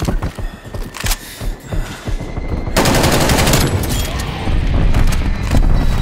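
Gunfire rattles in sharp, quick bursts.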